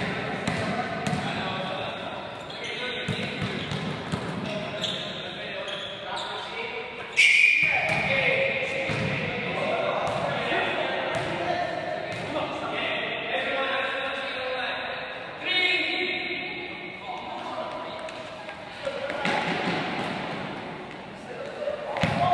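Children shout and call out in a large echoing hall.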